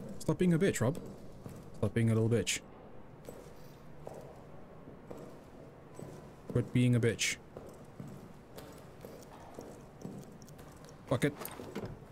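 Footsteps tread slowly across a wooden floor.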